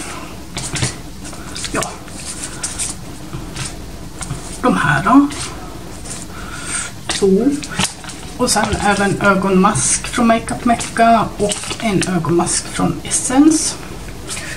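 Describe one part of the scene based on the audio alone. Plastic packets crinkle in a hand.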